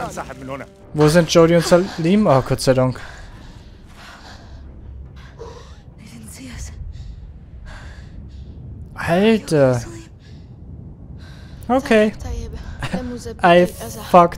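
A young woman speaks softly and with concern.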